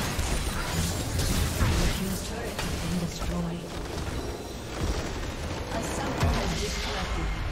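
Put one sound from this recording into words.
Magic blasts and sword clashes crackle in a busy fight.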